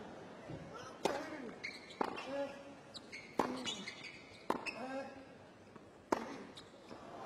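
Tennis balls are struck hard with rackets, back and forth in a rally.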